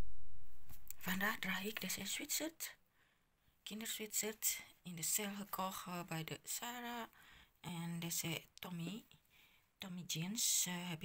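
A young woman talks calmly and close to the microphone.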